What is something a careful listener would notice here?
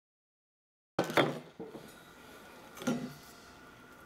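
A tumbler knocks against a table.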